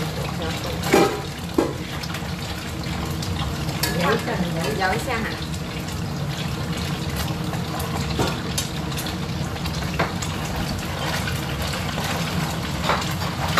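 Oil sizzles and crackles steadily in a pan.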